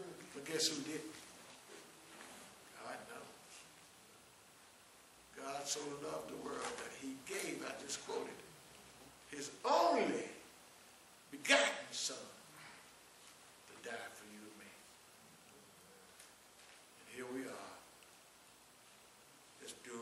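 An elderly man preaches with animation through a microphone in a large echoing hall, with pauses between phrases.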